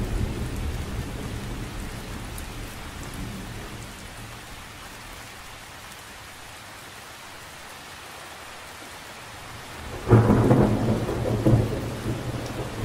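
Rain patters steadily on a lake's surface outdoors.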